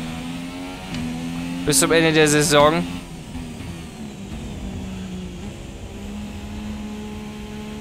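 A racing car's engine whines at high revs, dropping in pitch as it slows for a corner.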